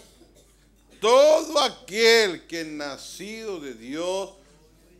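An elderly man speaks firmly through a microphone.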